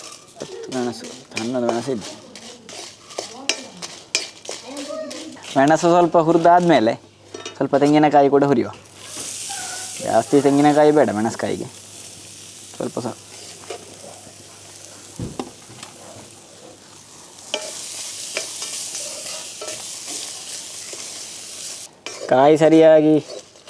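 A wooden spatula scrapes against a metal wok.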